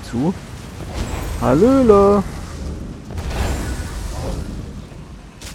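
A magical blast crackles and roars.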